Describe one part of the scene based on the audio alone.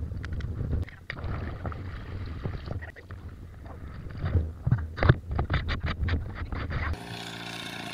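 Water splashes and sloshes in a metal pot.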